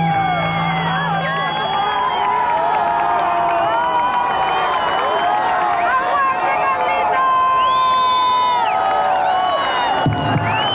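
A large crowd cheers and sings along loudly.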